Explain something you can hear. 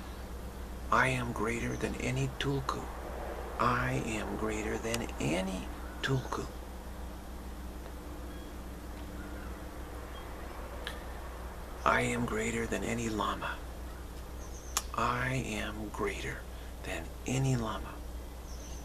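A middle-aged man speaks calmly and slowly, close to a microphone, with long pauses.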